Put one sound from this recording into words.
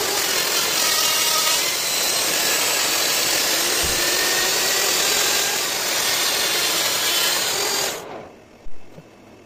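An electric grinder whines loudly at high speed, then winds down.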